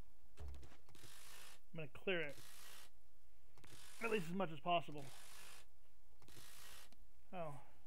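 A power wrench whirs in short bursts.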